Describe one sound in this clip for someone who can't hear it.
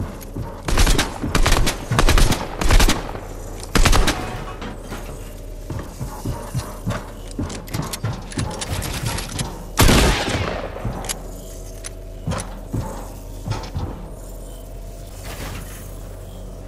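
Building pieces snap into place with sharp, loud clunks, over and over.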